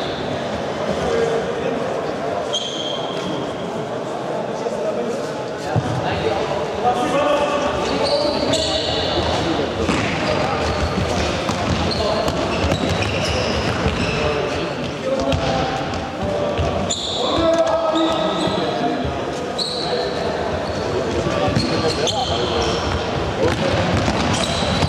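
Young boys shout and call out across the hall.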